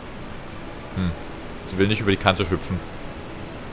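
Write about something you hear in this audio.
A man speaks briefly with animation into a close microphone.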